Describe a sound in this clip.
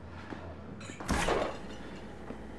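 A refrigerator door opens.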